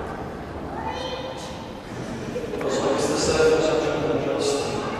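A man speaks calmly nearby in an echoing hall.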